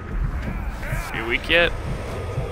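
A magical shimmering whoosh rings out.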